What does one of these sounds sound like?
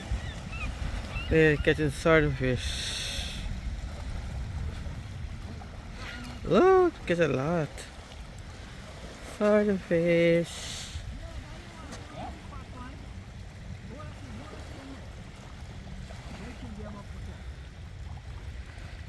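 Shallow water sloshes around wading legs.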